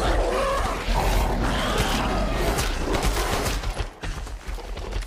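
A large beast snarls and growls loudly.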